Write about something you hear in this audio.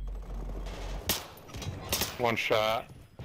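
A rifle fires a few sharp, loud shots.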